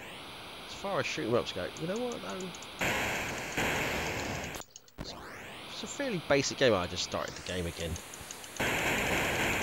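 Electronic zapping sound effects blast and warble.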